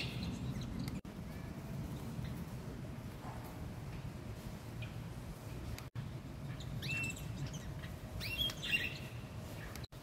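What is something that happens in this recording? Small birds chirp and tweet in short bursts.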